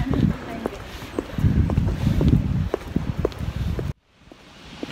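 Footsteps tap on pavement close by.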